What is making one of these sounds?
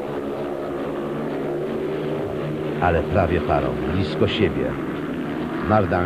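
Motorcycle engines roar steadily around a track.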